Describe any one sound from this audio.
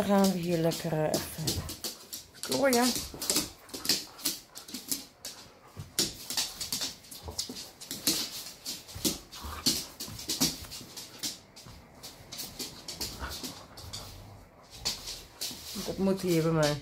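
Dog claws click on a hard floor.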